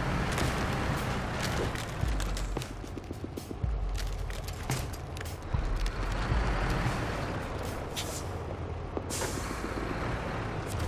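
A heavy truck engine rumbles and strains.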